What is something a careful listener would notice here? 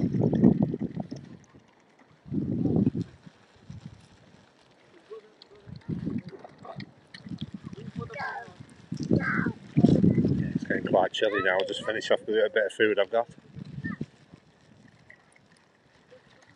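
Water splashes softly as swans paddle and feed.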